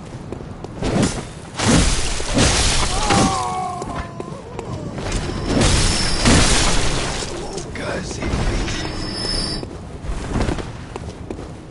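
A wooden carriage crashes and splinters with loud heavy blows.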